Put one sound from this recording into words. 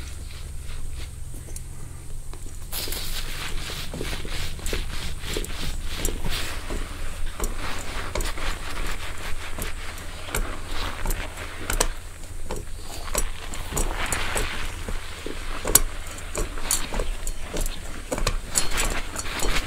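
Fingers rub and scratch through hair close to a microphone.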